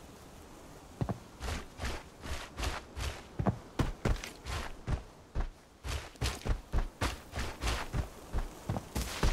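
Footsteps crunch quickly over dirt and grass.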